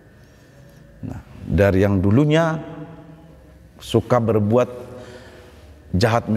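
A man preaches with animation in a slightly echoing room.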